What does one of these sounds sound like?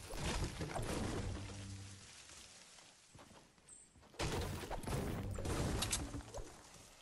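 A pickaxe strikes wood with heavy thuds.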